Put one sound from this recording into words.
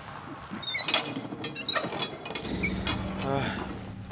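A metal valve wheel creaks as it turns.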